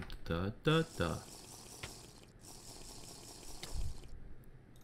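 A game character gulps down a drink.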